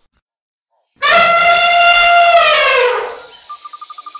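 An elephant trumpets loudly.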